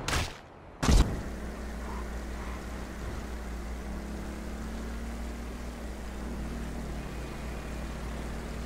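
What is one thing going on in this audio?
A motorbike engine hums steadily as it rides along.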